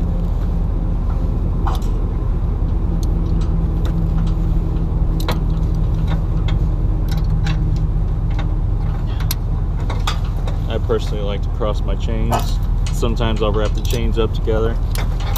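Metal chain links clink and rattle.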